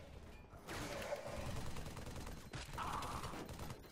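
Plasma guns fire in rapid bursts.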